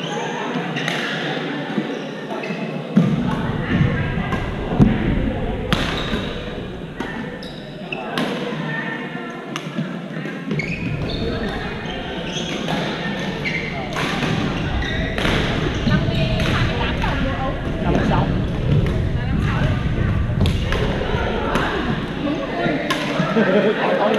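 Young men call out and talk in a large echoing hall.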